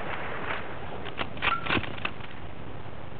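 A rifle bolt is worked with quick metallic clicks.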